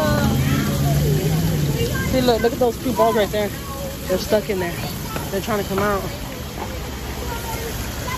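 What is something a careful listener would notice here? Water gushes and splashes down through a pipe.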